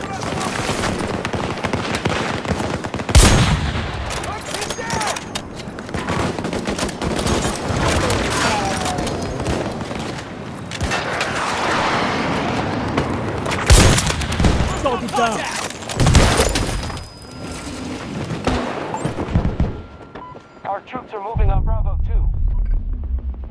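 Gunfire and explosions rumble around in a noisy battle.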